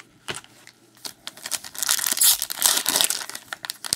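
Foil card packs crinkle and rustle as hands handle them.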